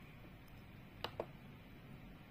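A computer mouse clicks once.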